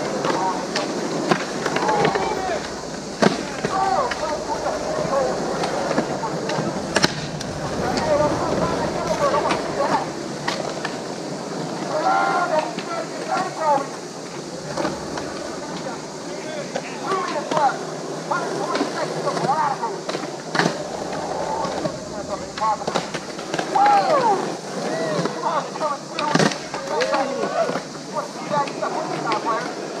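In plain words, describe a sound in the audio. Children shout and chatter in the distance outdoors.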